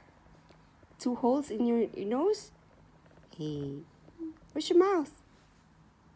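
A young child speaks softly and sleepily close by.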